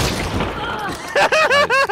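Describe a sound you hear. A man laughs close into a microphone.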